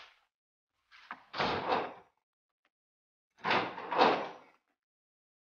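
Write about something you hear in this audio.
A heavy metal door clanks and rattles.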